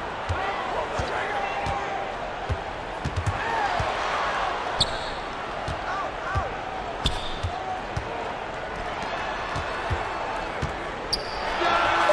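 A basketball bounces with dull, regular thumps on a hardwood court.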